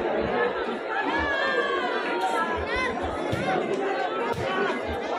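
A large crowd shouts and cheers loudly.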